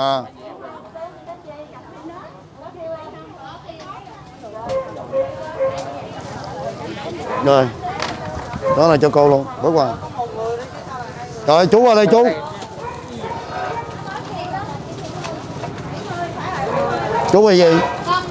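Several women and men chatter nearby in a busy crowd.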